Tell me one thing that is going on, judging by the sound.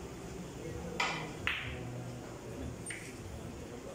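Billiard balls clack sharply against each other.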